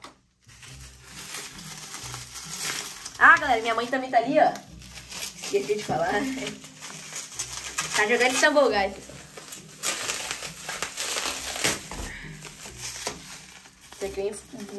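Plastic wrapping crinkles and rustles in someone's hands.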